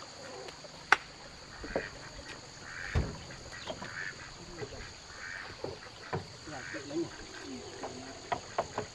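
A wooden pole knocks and thuds against timber.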